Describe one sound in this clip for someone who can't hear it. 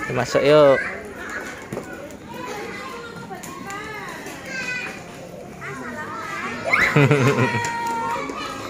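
A young child talks and squeals nearby.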